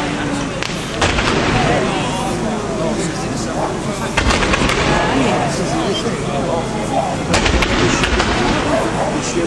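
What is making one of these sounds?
Fireworks bang with deep booms.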